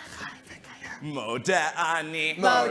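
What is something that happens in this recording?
A group of young singers sings together.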